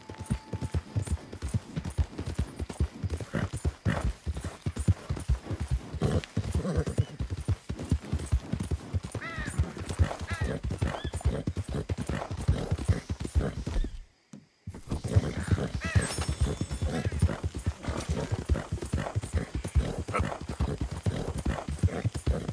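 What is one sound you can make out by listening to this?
A horse's hooves thud rapidly on a dirt track at a gallop.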